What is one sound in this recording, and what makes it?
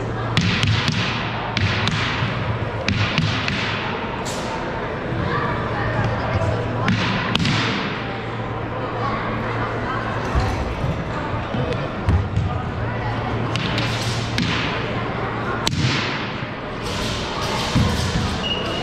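Feet thump and slide on a gym floor.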